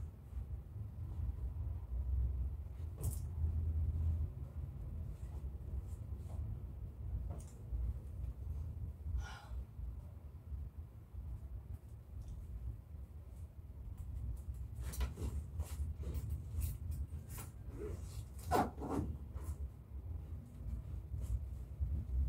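Clothes rustle and thump as they are handled.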